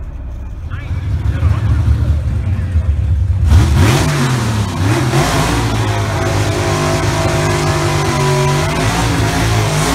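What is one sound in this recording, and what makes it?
A race car engine roars and revs.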